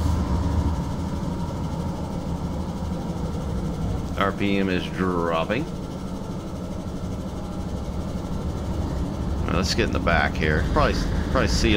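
A diesel locomotive engine rumbles low and steadily as it approaches.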